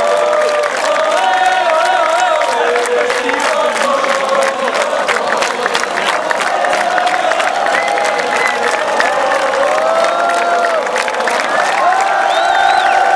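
A large crowd claps.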